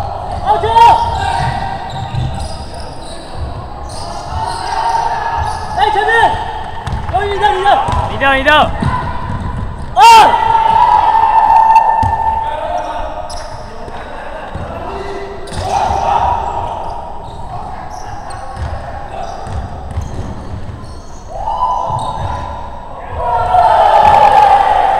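Sneakers squeak on a hardwood floor in an echoing gym.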